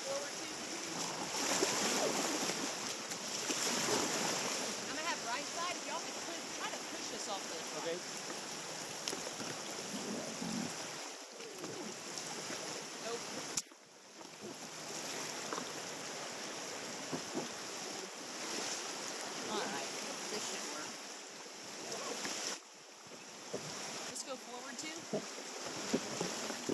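River rapids rush and splash steadily outdoors.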